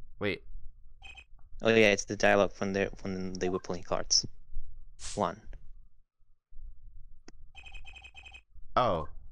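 Short electronic blips chirp in quick bursts.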